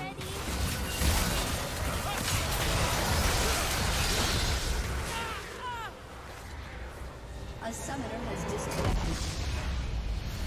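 Game spells and attacks crackle and boom in a fast fight.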